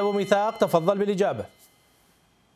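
A man speaks clearly into a microphone.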